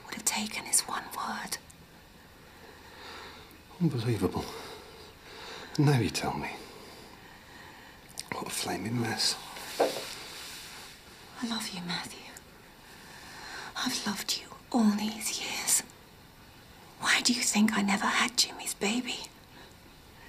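A young woman speaks close by, tearful and pleading.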